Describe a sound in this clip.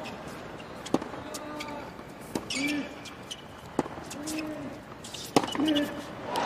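A tennis ball is hit hard back and forth with rackets.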